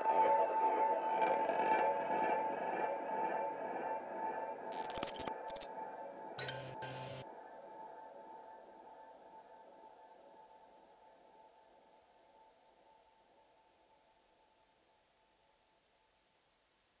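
An electric guitar plays sustained, ringing notes that slowly fade away.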